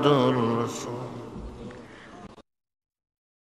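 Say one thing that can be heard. A man recites in a chanting voice through a microphone and slowly fades out.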